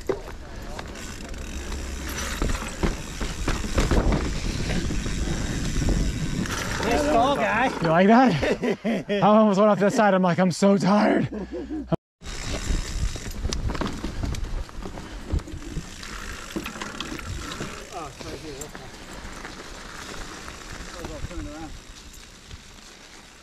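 Bike tyres rumble and rattle over a rough dirt trail.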